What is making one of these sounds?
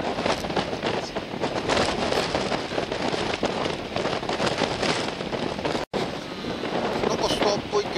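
Strong wind gusts and buffets outdoors.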